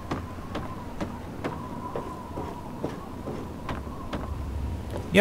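Footsteps clang steadily on a metal roof.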